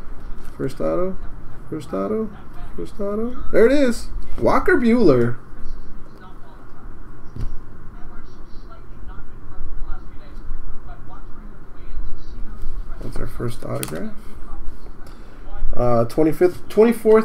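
Stiff cards slide and rustle as they are shuffled in hand.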